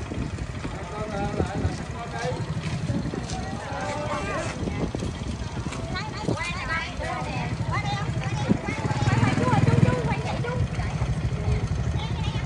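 A motorbike engine idles with a low rumble.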